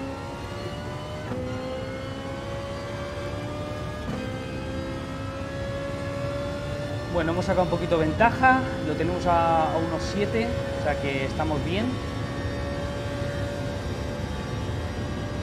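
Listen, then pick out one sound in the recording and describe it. A race car engine drones steadily, with its pitch rising and dropping as it shifts gears.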